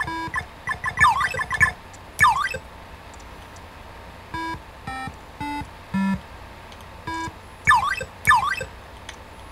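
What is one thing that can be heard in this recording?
A video game character jumps with quick sliding electronic tones.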